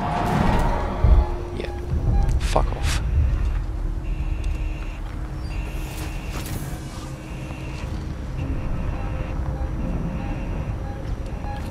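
A motion tracker beeps softly.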